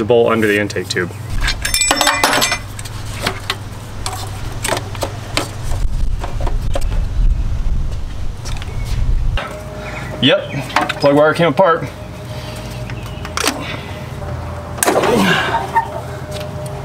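Metal tools click and clank against an engine.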